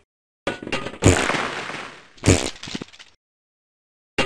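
A loud explosion booms and echoes.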